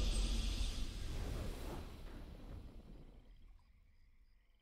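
A triumphant game fanfare booms and fades away.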